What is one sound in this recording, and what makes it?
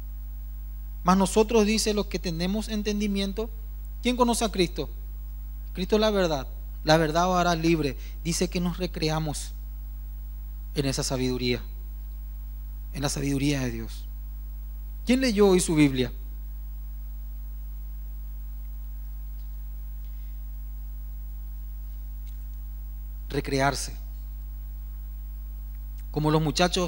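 A man speaks with animation through a microphone and loudspeakers in a large hall, pausing often.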